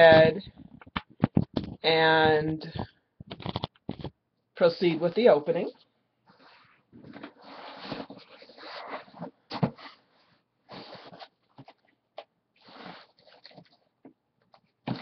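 Cardboard rustles and crinkles as a box is handled.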